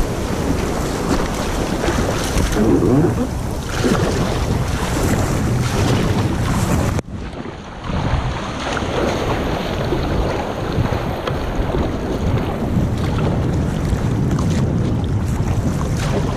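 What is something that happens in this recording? A paddle splashes through water in steady strokes.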